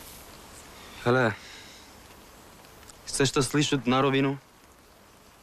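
A young man speaks nearby, firmly and briefly.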